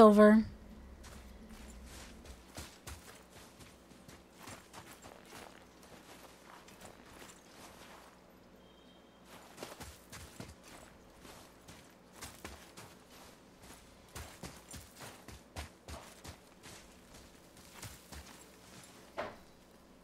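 Footsteps crunch steadily over snow and dry ground.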